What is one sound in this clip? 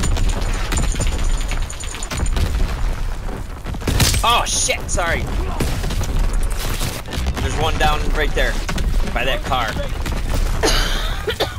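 Rifle shots crack in bursts.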